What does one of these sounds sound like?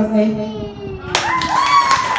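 A boy speaks into a microphone.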